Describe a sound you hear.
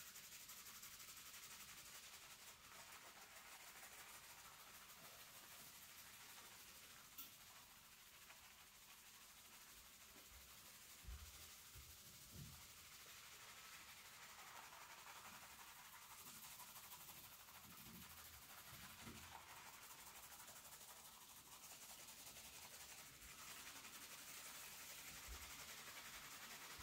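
Fingers scrub through foamy, lathered hair with a soft, steady squishing hiss.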